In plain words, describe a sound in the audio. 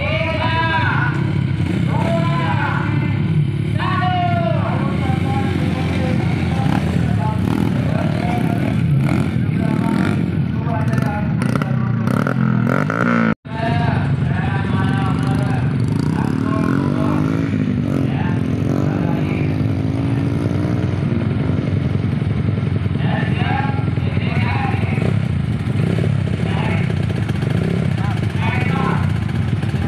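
Four-stroke trail motorcycles idle.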